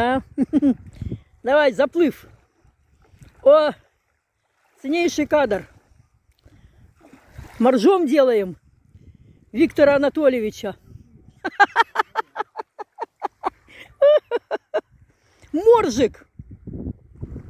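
A man wades through shallow water with soft splashes.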